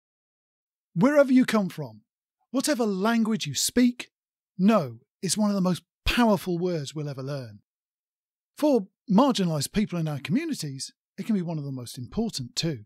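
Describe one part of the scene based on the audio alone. A man speaks calmly and clearly into a microphone close by.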